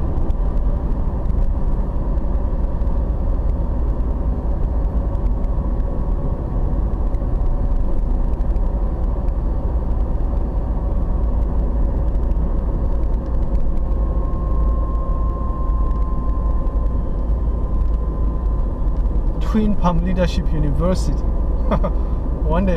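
A car's engine and tyres rumble on a paved road, heard from inside.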